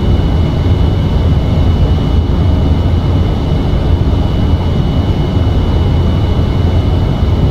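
Jet engines drone steadily with a low rumble.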